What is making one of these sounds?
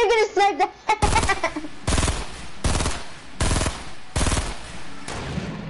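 A gun fires several loud shots in quick succession.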